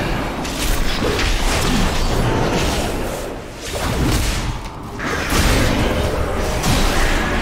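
A man talks into a close microphone with animation.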